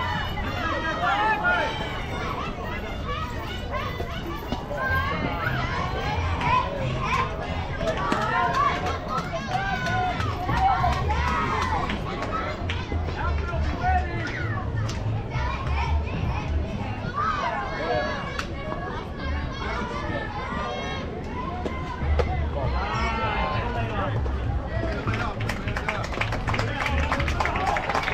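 Young girls call out and cheer across an open outdoor field.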